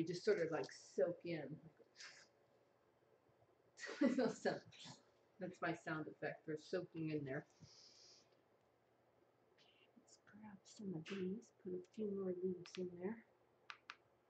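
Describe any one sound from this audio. A middle-aged woman talks calmly and close to a microphone.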